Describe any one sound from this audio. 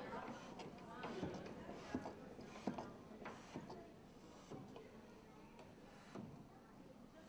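Wooden organ stops knock as they are pulled.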